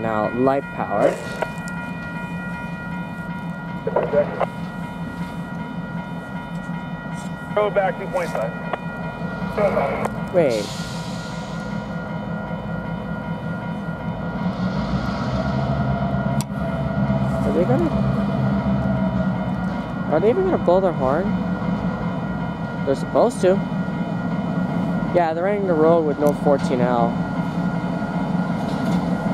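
A railroad crossing bell rings steadily.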